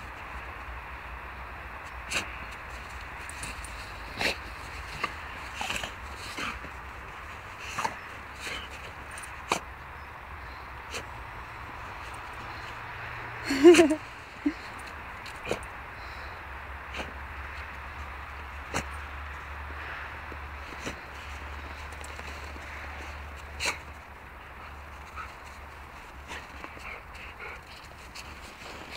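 A shepherd dog digs and rolls in crunching snow.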